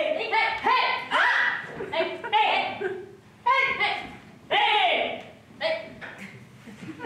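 Young women speak and exclaim loudly together.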